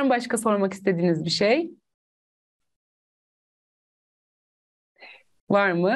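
A woman speaks with animation through a microphone, pausing briefly.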